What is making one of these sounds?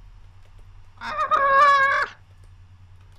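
A young man cries out loudly with a long, wavering call.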